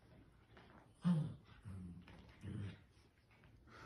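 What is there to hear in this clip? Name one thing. A dog growls playfully.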